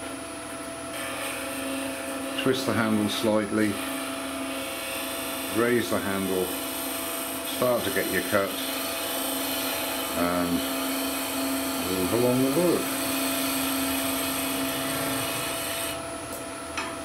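A chisel scrapes and hisses against spinning wood.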